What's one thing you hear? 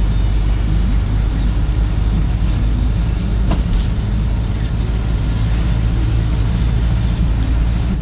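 Tyres hum on the road surface.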